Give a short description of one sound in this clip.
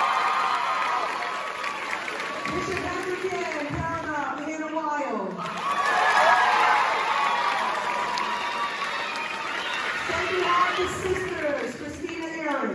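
An audience murmurs and chatters.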